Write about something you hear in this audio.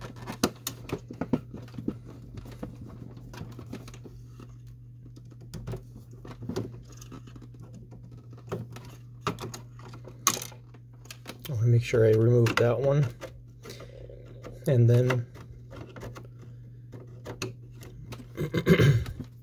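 A screwdriver clicks and scrapes against plastic parts.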